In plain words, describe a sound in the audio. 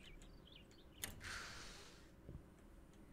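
Double doors click and swing open with a rush of air.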